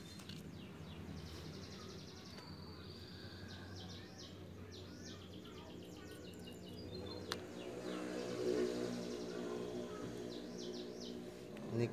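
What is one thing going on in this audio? A small knife scrapes and slices a green plant stem.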